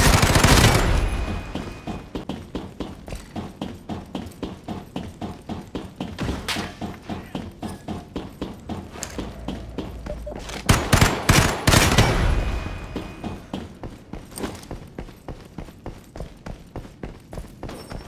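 Footsteps clank quickly on metal grating.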